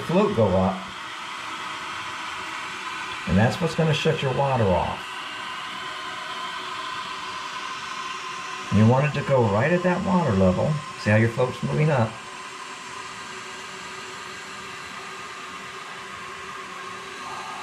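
Water rushes steadily into a toilet tank as it refills.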